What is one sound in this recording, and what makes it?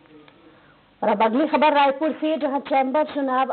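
A young woman speaks clearly and steadily into a close microphone.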